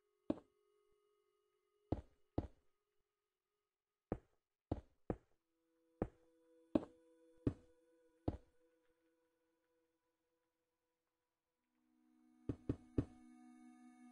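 Stone blocks are set down with short, sharp knocks, one after another.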